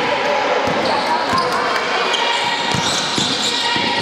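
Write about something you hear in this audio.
A basketball bounces on the floor as a player dribbles.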